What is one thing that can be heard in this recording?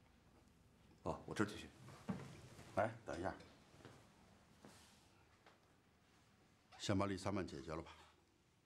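An older man speaks calmly and firmly close by.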